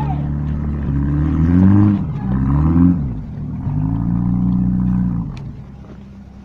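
An engine revs hard and then cuts out.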